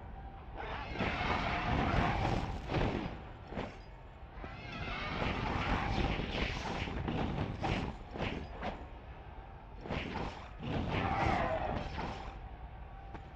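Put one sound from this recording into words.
A flaming chain whip whooshes and roars through the air.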